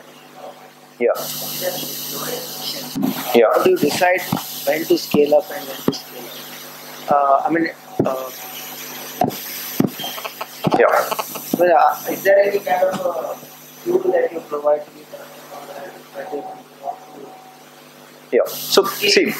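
A man speaks calmly through a microphone in a reverberant room.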